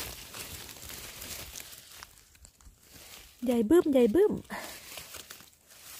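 A gloved hand rustles through moss and grass.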